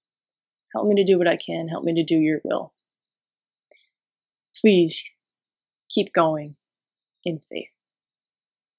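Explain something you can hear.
A young woman speaks calmly and closely into a microphone, in short phrases with pauses.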